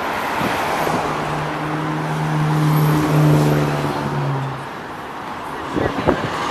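A bus engine rumbles as the bus drives past close by.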